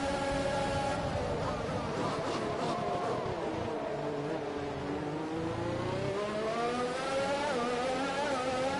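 A racing car engine drops in pitch as the car brakes hard, then revs up again.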